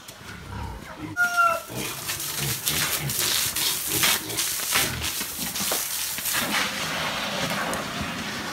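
Pigs grunt and snuffle close by.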